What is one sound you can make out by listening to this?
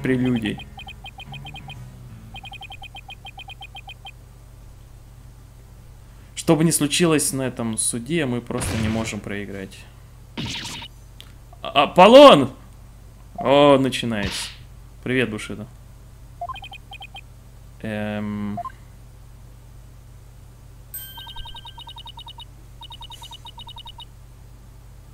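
Short electronic beeps tick rapidly in quick bursts.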